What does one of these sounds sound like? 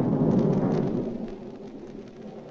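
A jet airliner's engines roar as it taxis.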